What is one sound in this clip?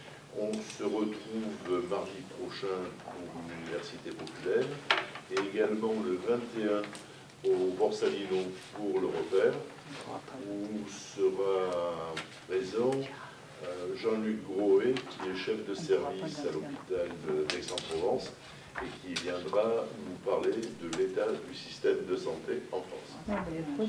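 A man speaks calmly and at length in a room with slight echo.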